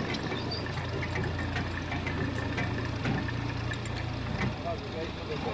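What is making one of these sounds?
A heavy machine engine rumbles steadily.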